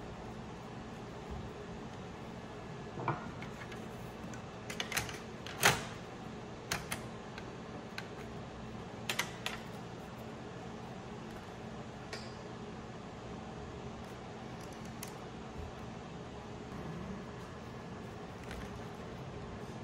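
Metal parts clink and tap as a computer is taken apart.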